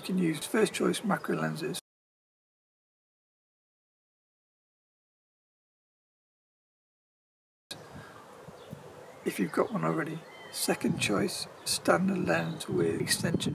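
A man speaks calmly and clearly to the listener, close to the microphone.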